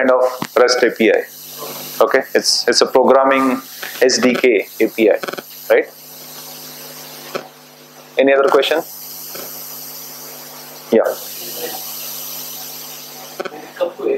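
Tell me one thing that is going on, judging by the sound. A man speaks to an audience in bursts with pauses between them.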